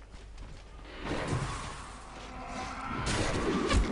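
Spell and combat sound effects crackle and whoosh.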